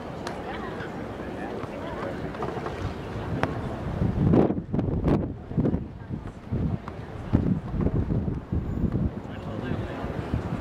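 Adult spectators chat quietly nearby outdoors.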